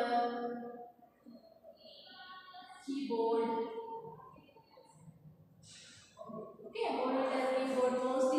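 A woman speaks calmly, as if teaching, nearby.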